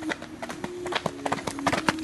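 A horse's hooves clop on a dirt path.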